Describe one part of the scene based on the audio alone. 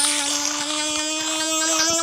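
A shark's jaws chomp on small fish.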